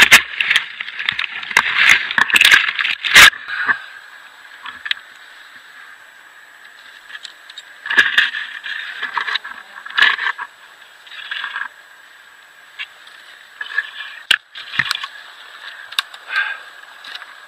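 Snowy branches rustle and scrape close by.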